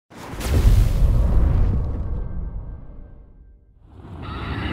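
A deep whoosh swells and fades away.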